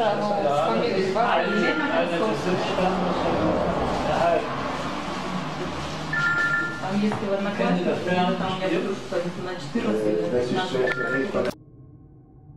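A woman talks calmly nearby.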